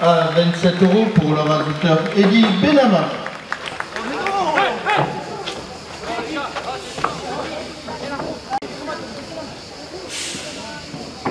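A crowd of spectators shouts and calls out in an open outdoor arena.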